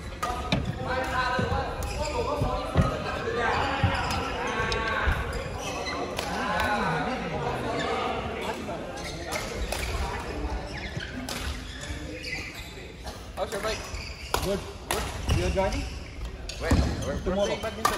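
Men talk nearby with animation, echoing in a large hall.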